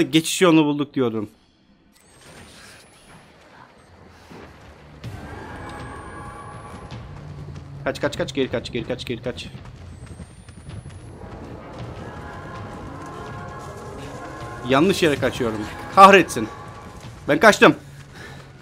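A young man talks with animation into a close microphone, in short loud bursts.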